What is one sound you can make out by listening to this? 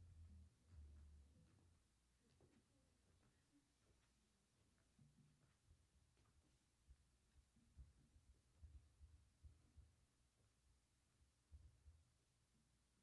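Footsteps thud on a wooden stage in a large hall.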